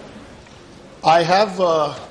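A man speaks loudly through a microphone in a large echoing chamber.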